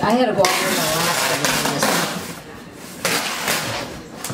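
Cardboard boxes scrape and rustle as they are moved.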